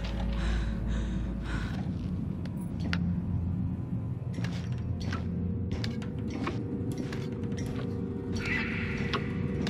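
Hands grip and clank on metal ladder rungs.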